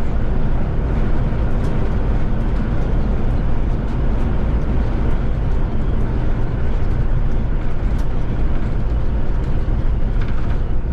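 Tyres roar steadily on a smooth road at speed.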